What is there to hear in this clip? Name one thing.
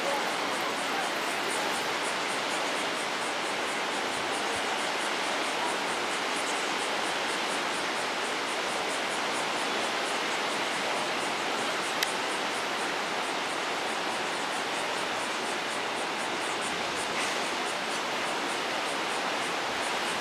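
Waves wash steadily onto a beach.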